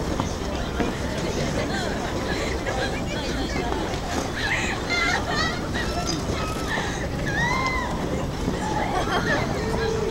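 A crowd of people chatters and calls out in the distance, outdoors.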